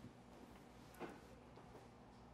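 Bedsheets rustle softly.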